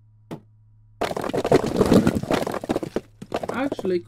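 Bricks crash and clatter down into a pile.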